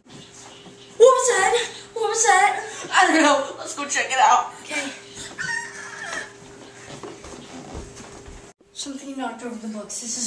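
A teenage boy talks loudly and with animation close by.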